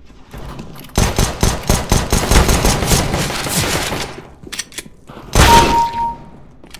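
Pistol shots ring out rapidly in quick bursts.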